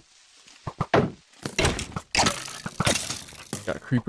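Sword blows strike a rattling skeleton.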